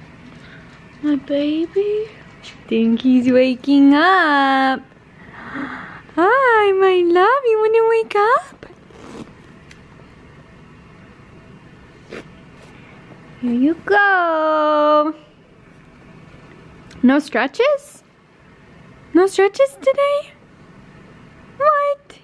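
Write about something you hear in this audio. A young woman talks close by in a high, sing-song voice, as if to a baby.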